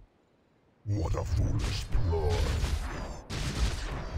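Weapons clash and strike rapidly in a fight.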